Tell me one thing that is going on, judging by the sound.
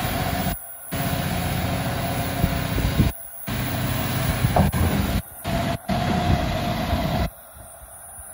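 Hydraulics whine steadily as a digger arm moves.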